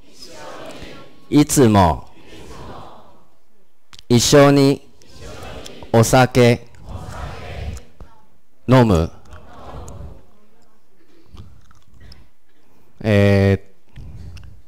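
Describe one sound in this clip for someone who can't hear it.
A man speaks clearly into a microphone in a slow, careful voice.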